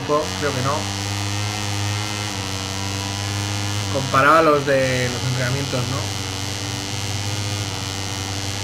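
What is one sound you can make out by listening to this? A motorcycle engine drones steadily at high revs.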